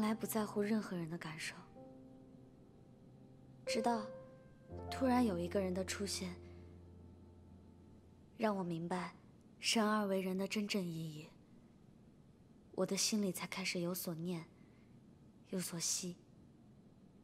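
A young woman speaks softly and earnestly, close by.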